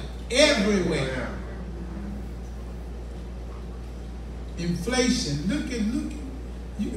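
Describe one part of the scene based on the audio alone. A man speaks with emphasis through a microphone and loudspeakers in a room with some echo.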